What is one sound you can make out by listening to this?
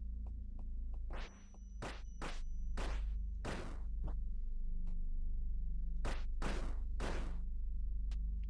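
Sharp whooshing sounds of slashing attacks burst out in quick succession.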